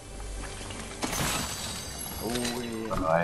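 A chest creaks open with a bright shimmering chime.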